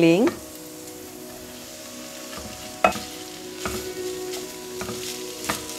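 Food sizzles softly in a frying pan.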